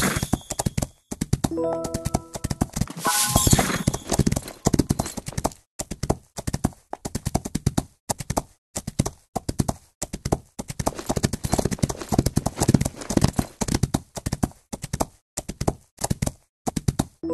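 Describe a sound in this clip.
Horse hooves pound the ground at a fast gallop.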